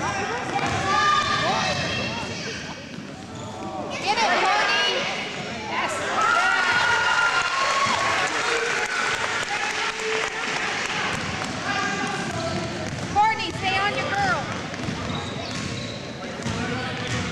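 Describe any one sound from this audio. Young children shout and call out excitedly in a large echoing gym.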